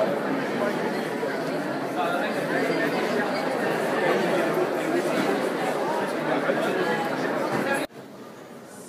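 A crowd chatters loudly in an echoing hall.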